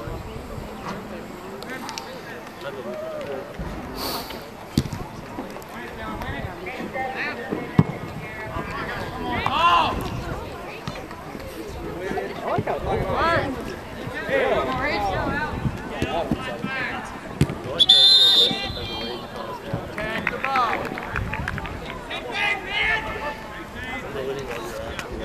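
A football is kicked with a dull thump.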